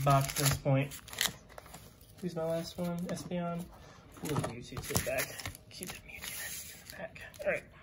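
Foil packs rustle as they are handled and set down.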